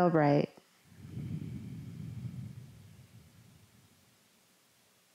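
A young woman exhales slowly through her nose.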